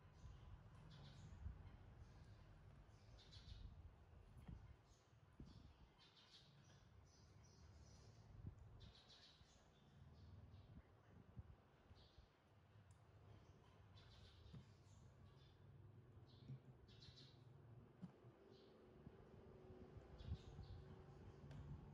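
A rubber toy duck squeaks as a small monkey squeezes it.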